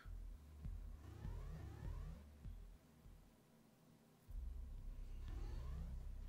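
Retro electronic game tones glide up and down.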